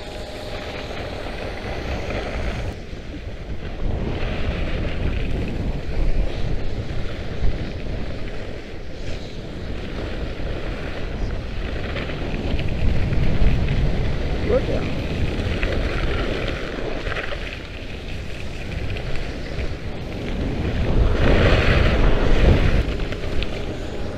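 A snowboard scrapes and hisses over snow.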